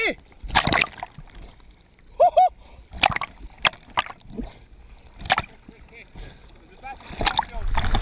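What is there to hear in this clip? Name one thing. Water splashes and sloshes close by.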